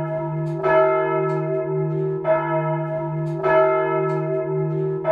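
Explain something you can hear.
A large swinging church bell rings, its clapper striking again and again.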